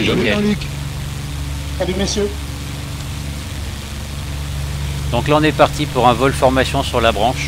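A propeller engine drones steadily.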